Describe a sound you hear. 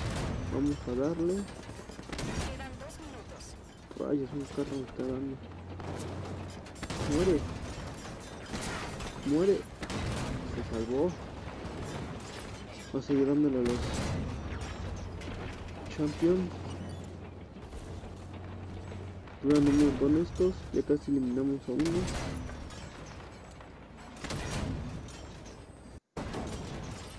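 Heavy guns fire in loud bursts.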